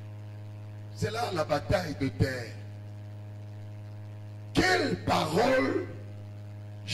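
A middle-aged man speaks with animation into a microphone, heard through a loudspeaker.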